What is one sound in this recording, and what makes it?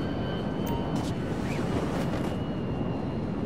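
A parachute snaps open with a flapping burst.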